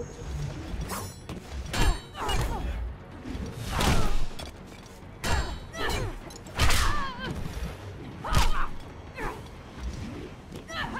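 Fast swings whoosh through the air.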